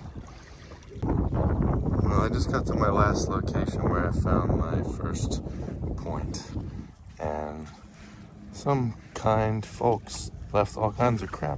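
A man talks calmly close to the microphone.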